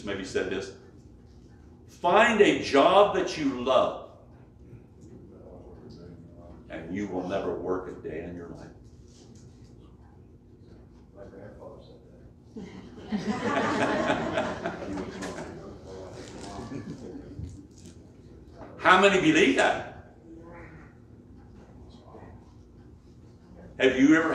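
An elderly man preaches with animation, pausing between phrases.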